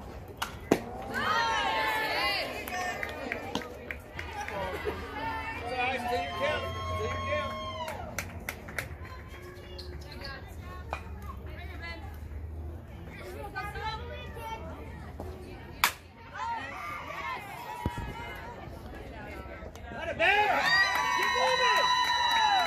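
Young women shout and cheer from across an open field.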